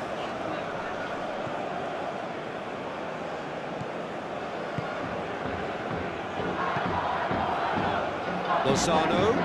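A large stadium crowd roars steadily, swelling louder toward the end.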